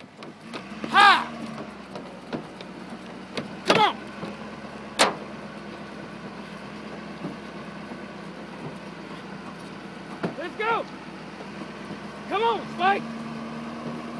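A young man shouts out loudly in short bursts, outdoors.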